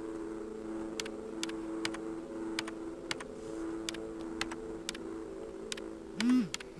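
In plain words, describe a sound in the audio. Keys on a virtual keyboard click sharply as letters are typed.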